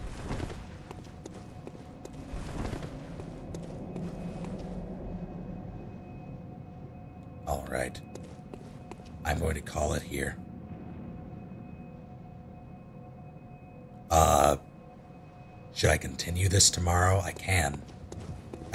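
Footsteps fall on stone paving.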